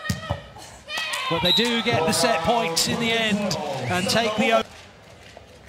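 A crowd cheers and applauds in a large hall.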